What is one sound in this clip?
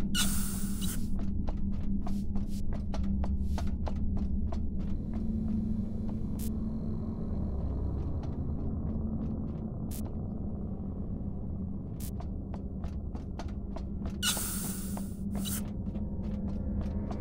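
A low machine hum drones steadily.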